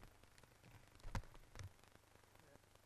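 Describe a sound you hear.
Footsteps thud softly on a carpeted floor nearby.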